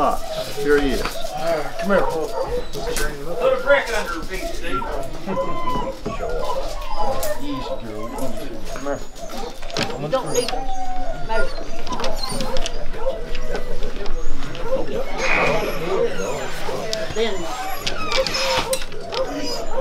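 Several men talk casually nearby, outdoors.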